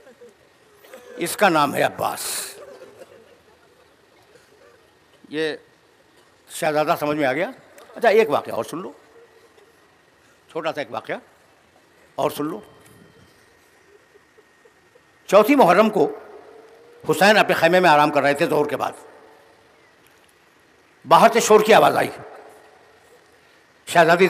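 An elderly man speaks with emotion into a microphone, in short bursts with pauses, heard through a loudspeaker in an echoing room.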